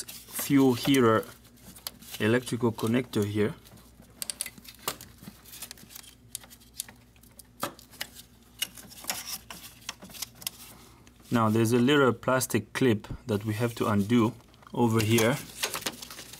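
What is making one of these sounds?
A ratchet clicks as a bolt is turned.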